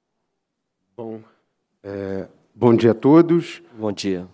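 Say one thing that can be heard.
A second man speaks calmly into a microphone.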